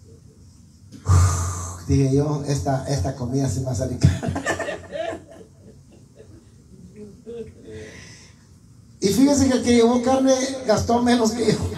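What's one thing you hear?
A middle-aged man sings loudly through a microphone and loudspeaker in an echoing room.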